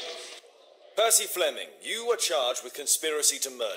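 A man speaks sternly and clearly, close by.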